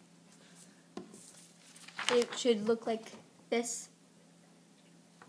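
Paper rustles as a young girl handles a sheet.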